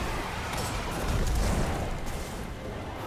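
A blast booms loudly.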